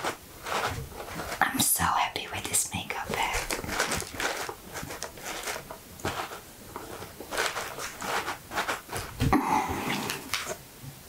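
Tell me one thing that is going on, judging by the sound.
Fingernails tap and scratch on a fabric-covered box.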